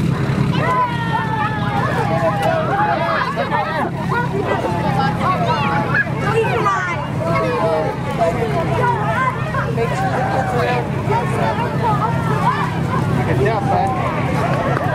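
A crowd of men, women and children chatters and calls out nearby outdoors.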